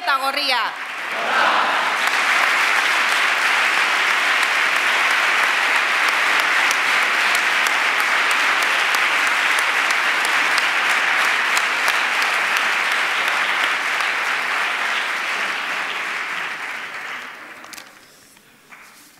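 A large crowd applauds and cheers loudly, then fades.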